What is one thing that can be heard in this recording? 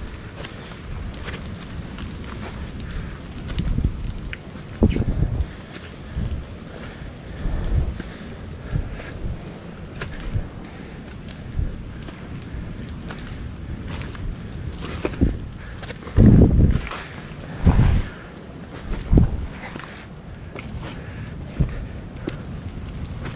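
Footsteps crunch over dry leaves.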